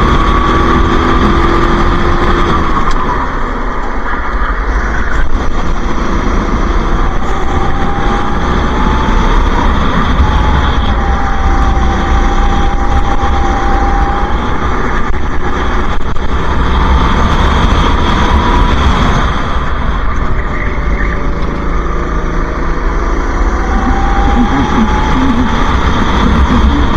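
A kart engine roars close by, its pitch rising and falling with the throttle.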